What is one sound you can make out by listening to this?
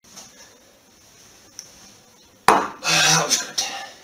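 A mug is set down on a hard counter.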